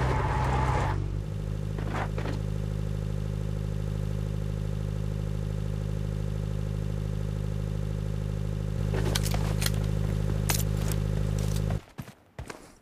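A vehicle engine idles with a steady hum.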